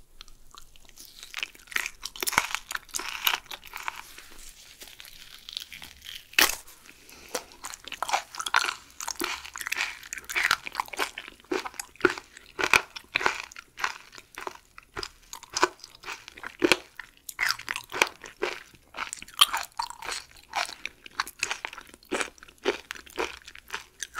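A young woman chews food wetly and loudly, close to a microphone.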